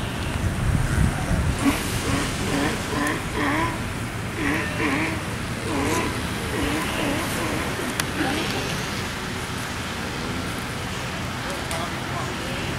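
A Galapagos sea lion shuffles across sand.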